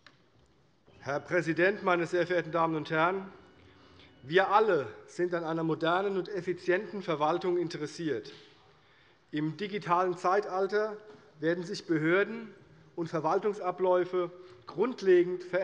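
A man speaks calmly and formally through a microphone.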